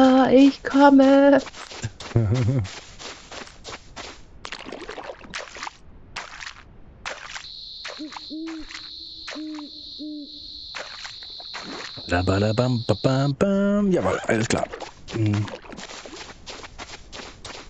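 Footsteps crunch quickly on sand.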